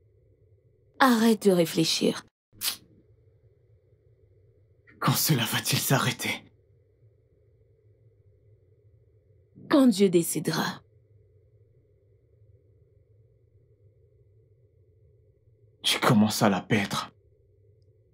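A man speaks in a low, pained voice, close by.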